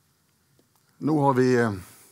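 A man speaks into a microphone with a loud, drawn-out voice.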